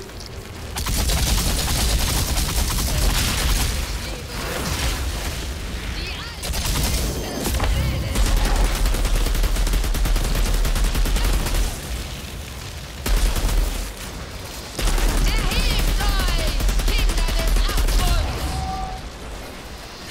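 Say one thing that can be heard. A rifle fires rapid, loud bursts.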